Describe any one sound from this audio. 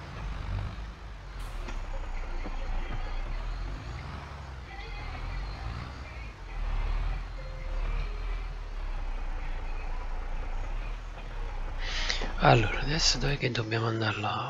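A tractor engine hums steadily at low revs.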